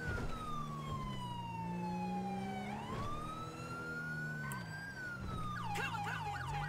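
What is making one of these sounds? A police siren wails loudly and steadily.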